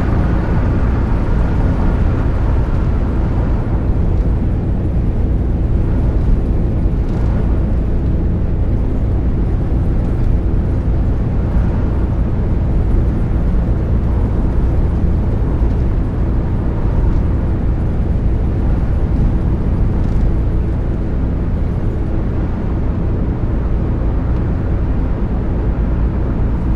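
A bus engine drones steadily while driving.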